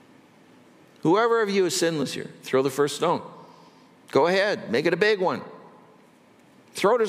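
An older man speaks calmly and clearly through a microphone, in short phrases with pauses.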